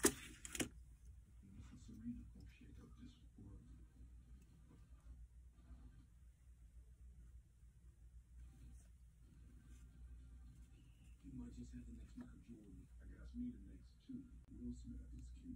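Hard plastic pieces click and tap together.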